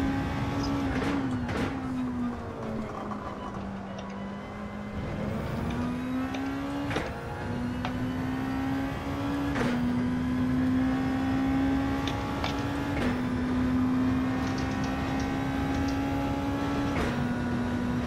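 A racing car's gearbox clicks sharply with each gear change.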